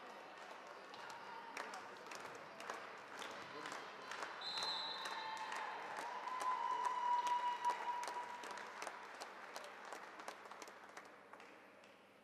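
Volleyballs thud as players hit them in a large echoing hall.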